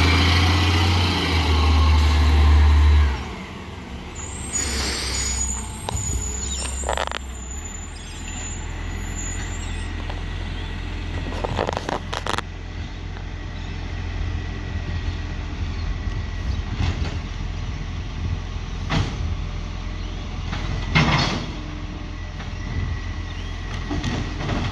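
A garbage truck engine rumbles loudly close by, then idles further off.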